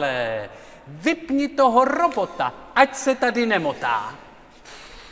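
A man speaks loudly and theatrically in a large hall.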